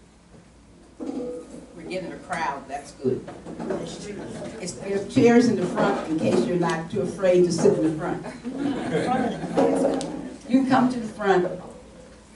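An elderly woman speaks calmly across a room.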